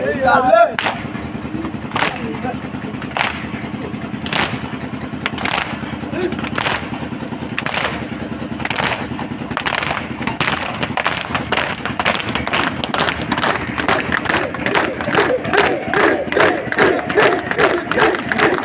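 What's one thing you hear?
A crowd of men beat their chests in a steady rhythm, getting faster.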